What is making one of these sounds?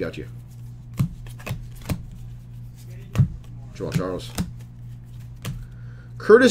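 Trading cards flick and click as they are shuffled by hand.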